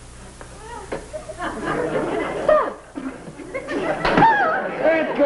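A woman talks excitedly.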